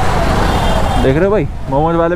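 A motorcycle engine revs up sharply.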